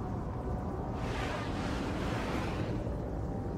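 A spaceship whooshes past.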